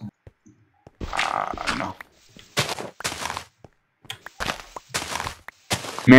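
A shovel digs into dirt with short crunching scrapes.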